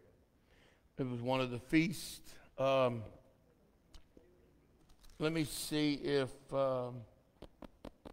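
A man speaks with feeling through a microphone in a large echoing hall.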